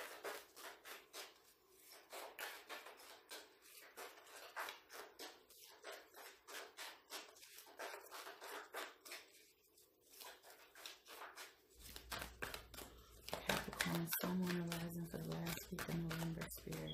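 Playing cards riffle and flick rapidly as they are shuffled by hand.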